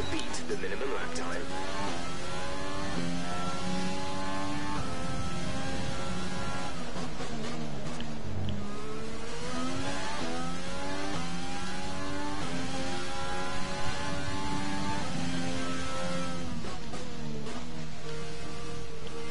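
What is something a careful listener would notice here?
A racing car engine screams at high revs, its pitch climbing and dropping sharply with each gear change.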